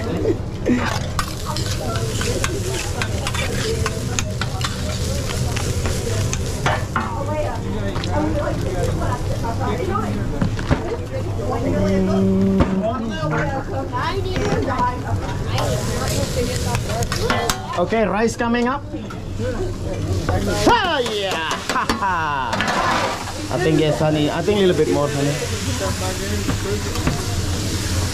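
Adults and children chat and laugh nearby in a busy room.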